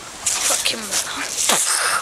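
A teenage boy talks to the listener up close.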